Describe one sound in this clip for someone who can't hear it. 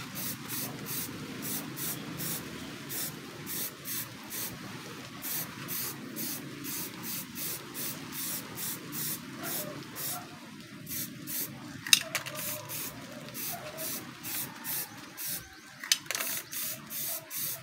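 A spray can hisses in short bursts.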